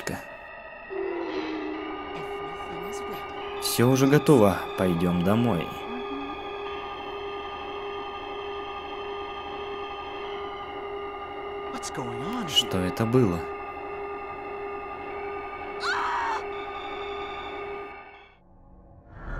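A steady, eerie humming drone rings out and swells.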